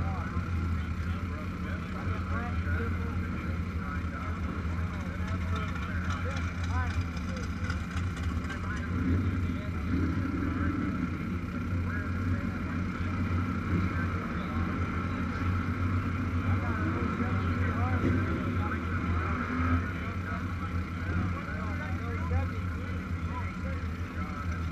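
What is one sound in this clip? A motorcycle engine idles close by with a steady low rumble.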